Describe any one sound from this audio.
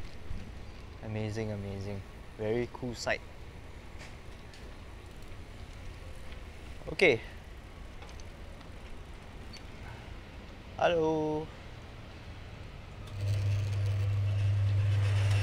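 Bicycle tyres roll steadily over a paved road.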